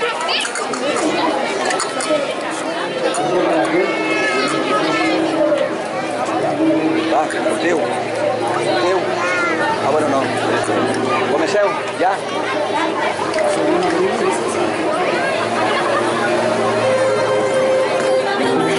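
A crowd of men and women chatter lively outdoors.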